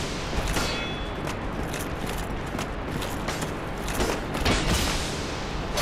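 A sword clangs against armour in heavy blows.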